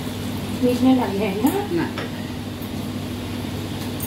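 A spatula scrapes and stirs in a pot.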